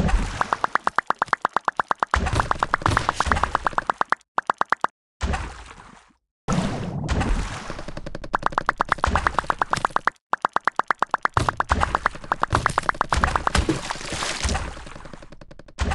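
Paint sprays out in quick, repeated bursts.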